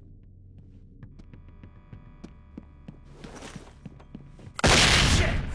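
Footsteps tap quickly across a hard floor.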